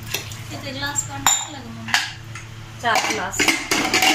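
A metal lid clanks onto a pot.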